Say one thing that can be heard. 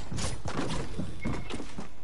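A pickaxe swings and strikes with a sharp whack.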